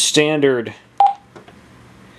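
A radio gives a short beep as a button is pressed.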